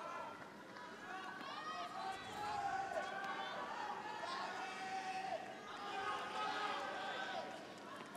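A tennis ball is struck hard with a racket, back and forth.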